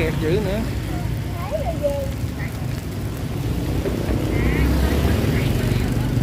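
Batter sizzles steadily in a hot pan.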